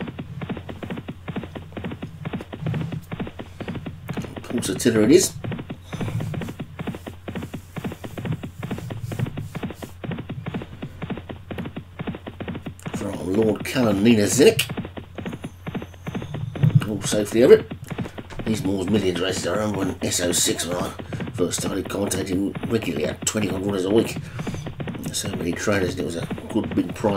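Horses' hooves drum rapidly on turf as they gallop.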